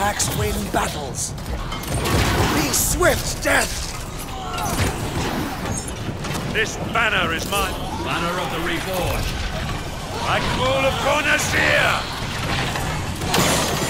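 Weapons clash and clang in a battle.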